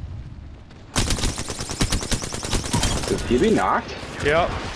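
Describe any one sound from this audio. A rifle fires in rapid bursts of gunfire.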